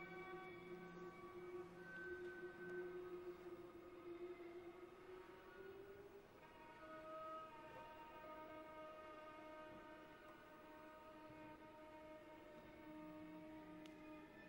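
A cello plays slow, sustained notes.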